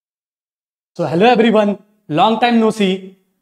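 A young man speaks calmly and cheerfully into a close microphone.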